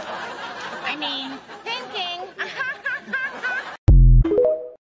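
An older woman talks with animation close by.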